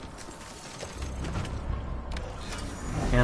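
A motorbike engine rumbles low.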